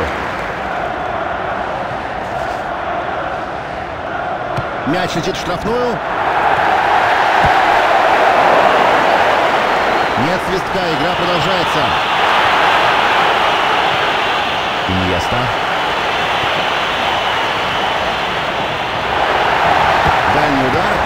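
A large crowd roars and cheers steadily, rising louder at times.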